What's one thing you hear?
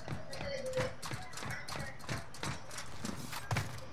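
Hands and feet clank on a metal ladder.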